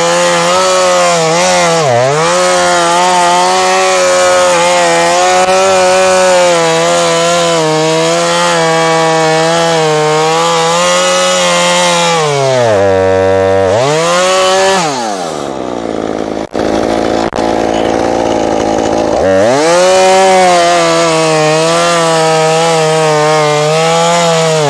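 A chainsaw engine roars close by, briefly slowing to a low idle before revving up again.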